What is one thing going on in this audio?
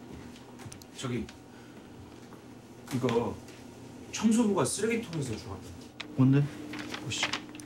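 A man speaks nearby.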